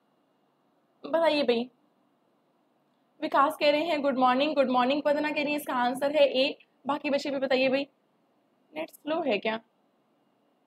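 A young woman speaks calmly into a close microphone, with pauses.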